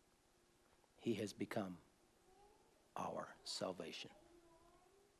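A middle-aged man speaks calmly and close by, in short phrases.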